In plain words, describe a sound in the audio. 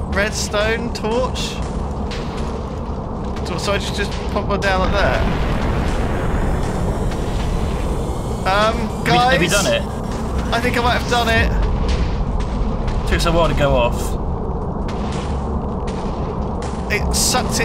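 Explosions boom and rumble repeatedly.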